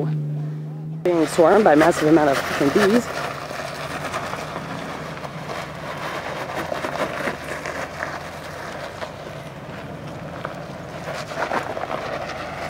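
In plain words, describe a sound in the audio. Tyres grind and crunch over rock and gravel.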